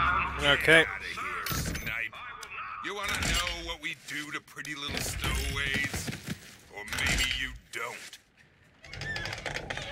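Heavy metal doors slide and scrape open.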